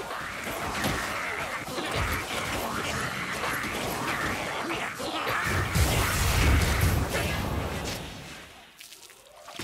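Weapons clash and hack in a fierce close fight with a snarling horde.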